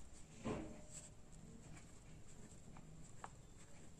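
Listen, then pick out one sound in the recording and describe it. A pen scratches softly on paper as someone writes.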